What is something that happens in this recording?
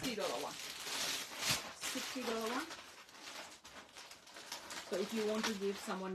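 Plastic wrapping crinkles as a woman handles folded cloth.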